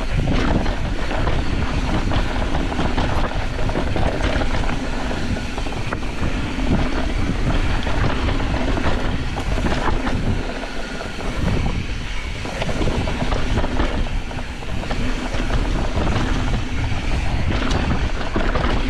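A bicycle rattles over bumps with sharp clicks and knocks.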